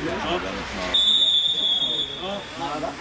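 A referee blows a long blast on a whistle.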